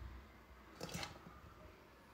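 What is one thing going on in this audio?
Hands squelch through wet vegetables in a plastic tub.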